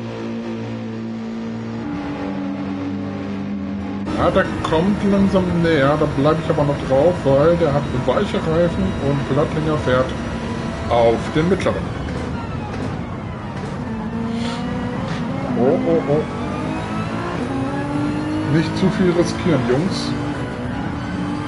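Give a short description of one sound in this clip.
A racing car engine roars at high revs and drops in pitch as the car brakes.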